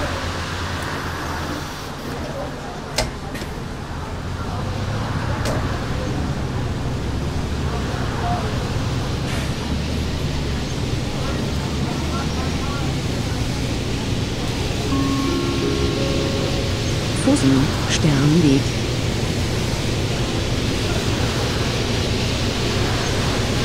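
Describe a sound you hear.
A bus engine drones steadily and grows louder as it gathers speed.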